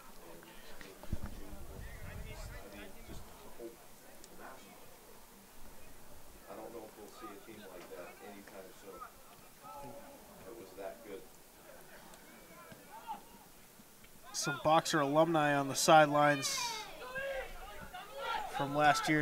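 Young men shout to each other across an open field, louder toward the end.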